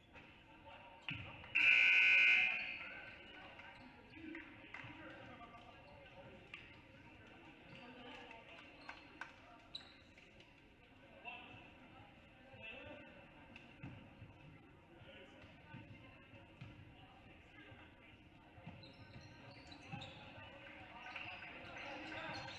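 A small crowd murmurs and cheers in an echoing gym.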